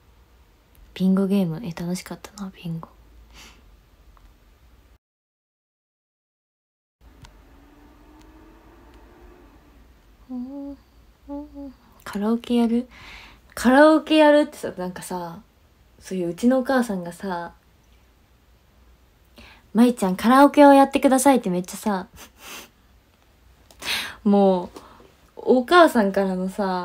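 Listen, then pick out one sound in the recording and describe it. A young woman talks animatedly and close by.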